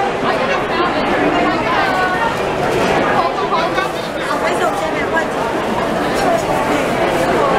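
Many voices chatter in a busy, crowded room.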